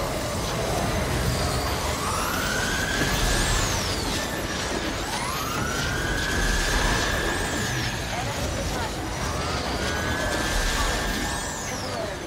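Rapid gunfire and blasts rattle in a chaotic battle.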